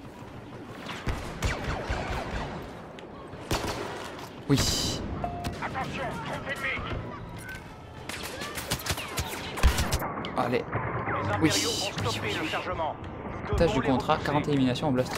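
Blaster guns fire in rapid bursts of sharp zaps.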